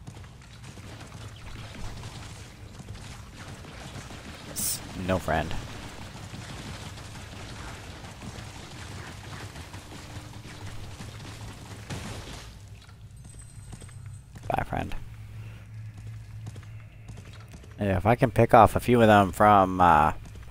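A blaster fires rapid electronic zaps.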